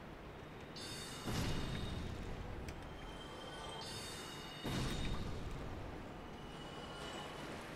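A magic spell is cast with a shimmering whoosh.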